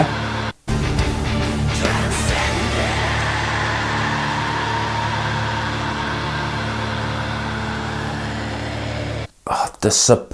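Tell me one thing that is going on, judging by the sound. Heavy metal music plays loudly, then stops abruptly.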